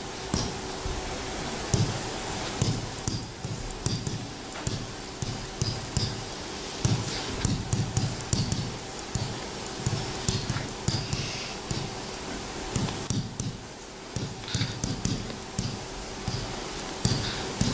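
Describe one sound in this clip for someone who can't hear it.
A pen taps and squeaks against a board.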